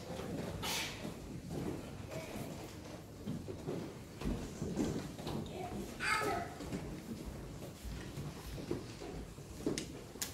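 A man murmurs softly in a large echoing hall.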